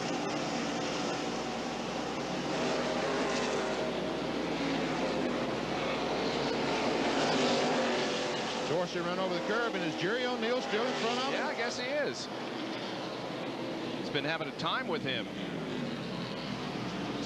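Race car engines roar loudly as the cars speed past.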